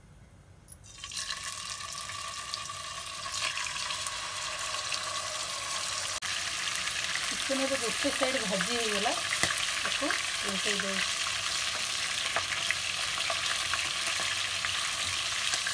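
Chicken pieces sizzle loudly in hot oil.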